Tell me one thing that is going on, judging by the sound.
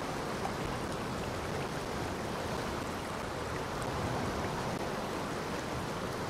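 Water laps gently at a shore.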